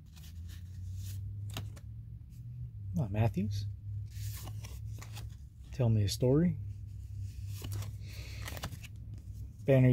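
Trading cards slide against each other as they are shuffled.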